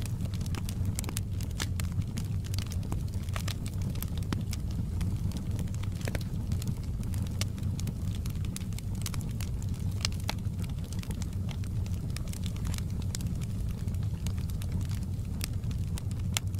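A fire roars with a low, steady rumble.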